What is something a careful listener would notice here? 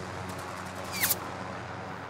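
A helicopter flies by overhead.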